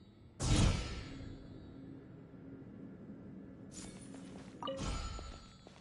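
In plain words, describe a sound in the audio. A humming energy beam drones steadily.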